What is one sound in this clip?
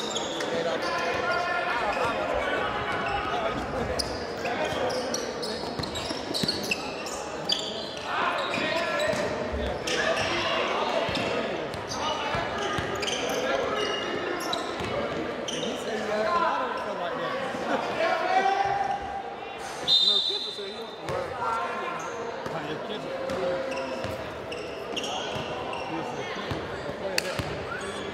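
A crowd of spectators chatters and shouts.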